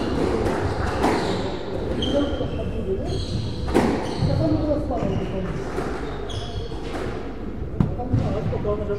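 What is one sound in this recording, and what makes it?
A squash ball smacks sharply against the walls in an echoing court.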